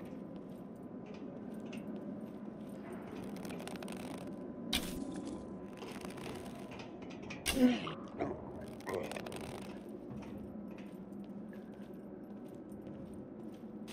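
A bowstring creaks as a wooden bow is drawn.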